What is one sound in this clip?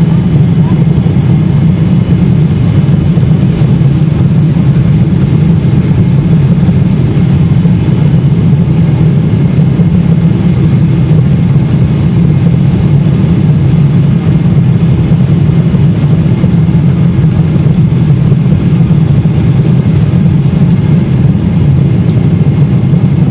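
A jet engine roars loudly and steadily, heard from inside an airliner cabin.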